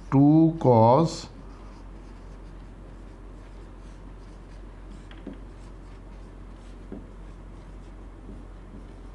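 A marker squeaks and taps as it writes.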